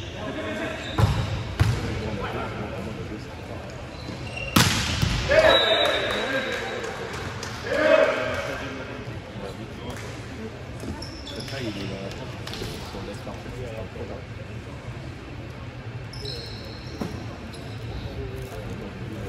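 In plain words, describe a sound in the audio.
A volleyball is struck hard, with thuds echoing around a large hall.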